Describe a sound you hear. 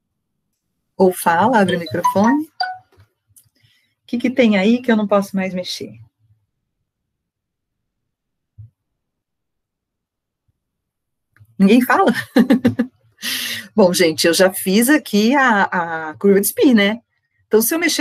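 A woman speaks with animation over an online call, close to the microphone.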